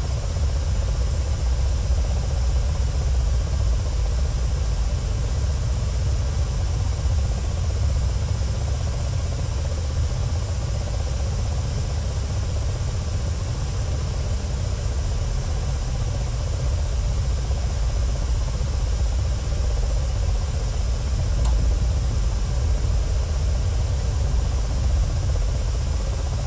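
A helicopter's engine and rotor drone steadily from inside the cockpit.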